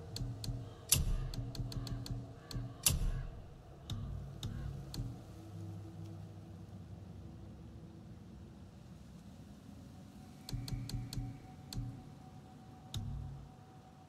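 Soft menu clicks tick as options are selected.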